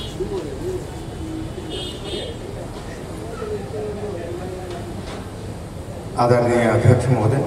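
An older man speaks with animation into a microphone through loudspeakers.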